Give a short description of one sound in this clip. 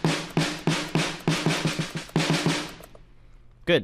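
A snare drum is struck in a quick rhythm, ringing briefly after each hit.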